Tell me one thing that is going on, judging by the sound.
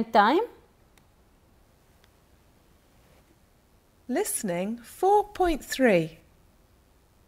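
A young woman speaks clearly and calmly through a microphone.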